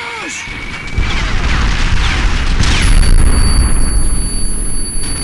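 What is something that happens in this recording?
A landmine explodes with a deep, heavy boom.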